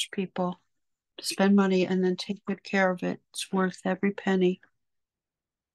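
A middle-aged woman talks calmly through an online call microphone.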